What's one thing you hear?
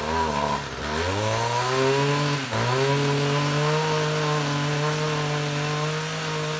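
A two-stroke string trimmer engine starts and idles.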